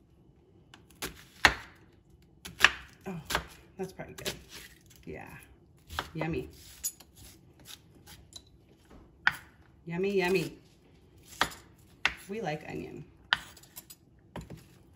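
A knife chops through an onion onto a wooden board with sharp knocks.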